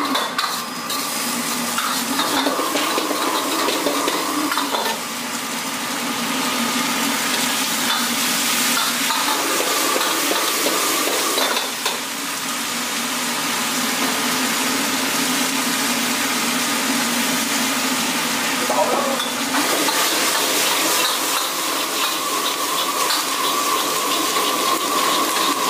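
Food sizzles and crackles in a hot wok.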